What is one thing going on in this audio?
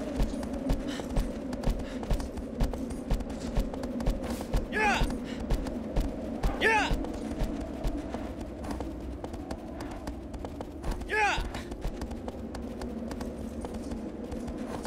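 A horse gallops with steady, rhythmic hoofbeats on soft ground.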